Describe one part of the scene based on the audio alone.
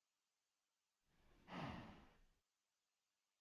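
A young woman makes a short vocal sound close to a microphone.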